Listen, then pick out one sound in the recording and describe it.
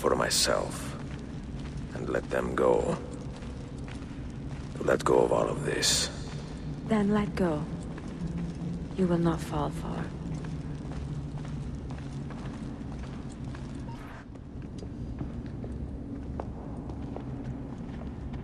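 Footsteps tread slowly on a stone floor.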